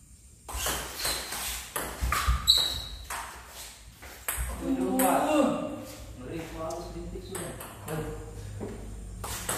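A ping-pong ball clicks back and forth between paddles and table.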